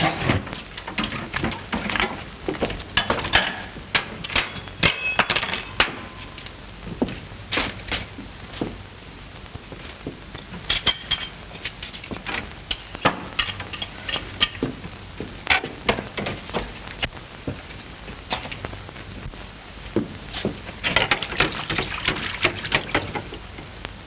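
Dishes and pans clatter and clink.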